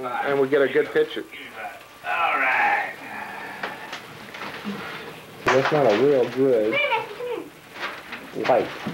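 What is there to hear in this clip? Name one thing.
A young girl talks playfully close by.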